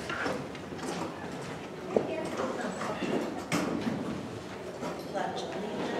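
Chairs scrape and knock as several people stand up.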